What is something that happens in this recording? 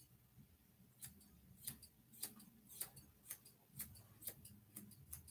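Scissors snip quickly at fur.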